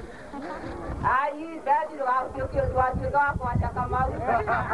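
A crowd of women sings loudly nearby.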